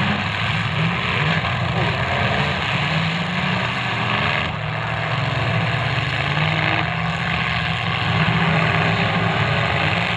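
Car engines roar and rev loudly nearby.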